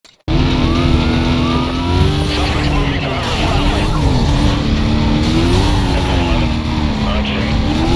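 Police sirens wail close by.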